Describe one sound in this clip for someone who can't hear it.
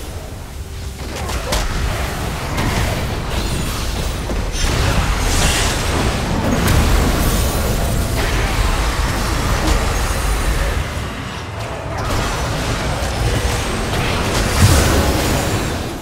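Short impacts from game weapons strike repeatedly.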